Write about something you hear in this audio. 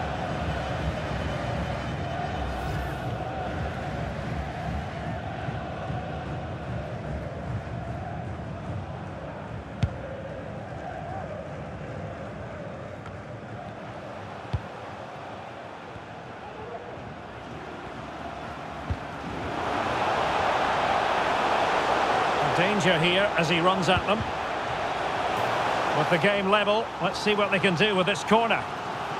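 A large stadium crowd roars steadily and then swells louder.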